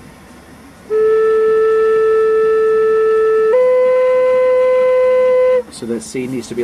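An electronic tuner sounds a steady tone that steps up in pitch.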